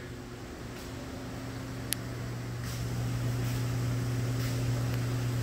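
Aquarium pumps hum steadily.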